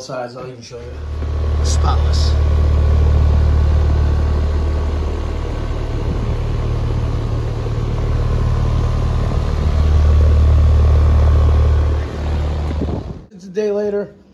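An outdoor air conditioning unit hums steadily with a low, loud drone.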